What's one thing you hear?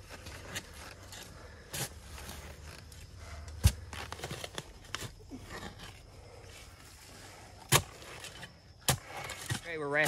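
A shovel scrapes and chops into dirt.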